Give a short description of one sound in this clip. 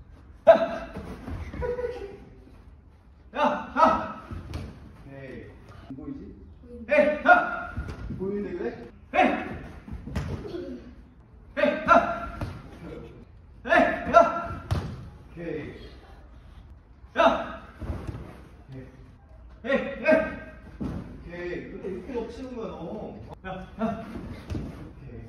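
A football is kicked hard with sharp thuds.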